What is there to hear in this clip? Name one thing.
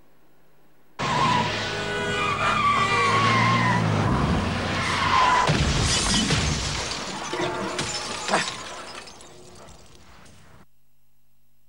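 A car drives fast through rain at night.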